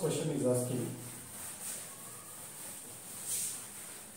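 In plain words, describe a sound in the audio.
A cloth rubs across a blackboard.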